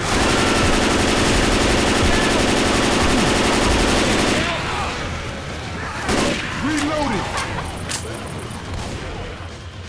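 Rifle gunfire rattles in rapid bursts.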